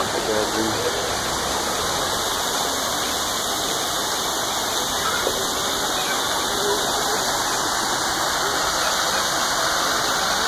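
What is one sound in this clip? A small child babbles softly nearby.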